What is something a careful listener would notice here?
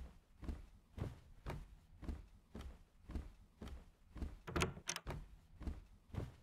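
Footsteps thud steadily on a wooden floor.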